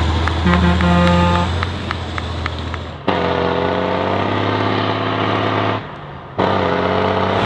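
A heavy truck engine roars and revs loudly.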